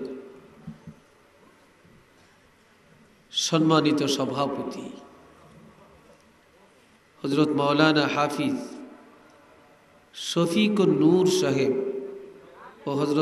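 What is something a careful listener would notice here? An elderly man chants melodically into a microphone in long phrases with pauses between them.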